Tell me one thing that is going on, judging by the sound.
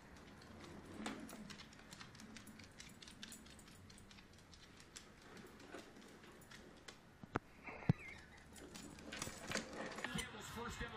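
Dog claws click and patter on a wooden floor.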